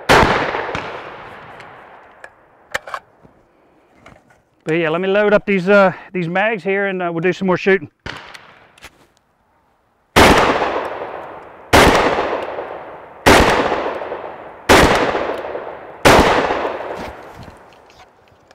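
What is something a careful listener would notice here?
A shotgun fires loud shots that echo and fade outdoors.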